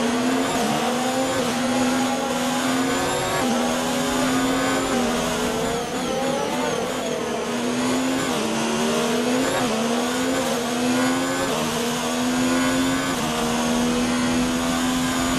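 A racing car engine screams at high revs, rising through the gears and dropping as it slows for corners.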